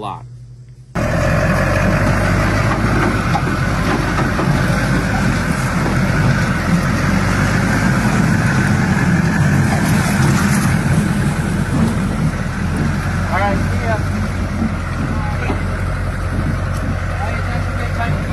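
A lifted pickup truck on giant tractor tyres rumbles as it drives into a pond.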